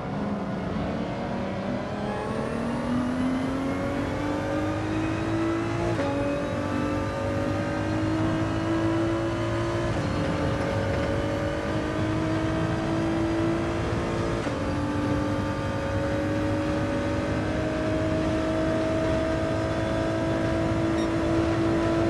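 A racing car engine roars and revs higher through the gears.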